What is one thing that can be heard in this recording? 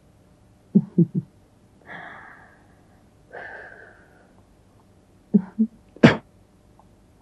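A man coughs close by.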